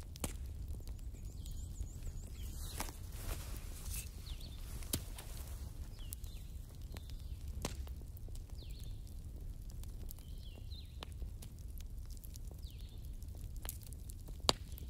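Flames roar softly in a low steady rush.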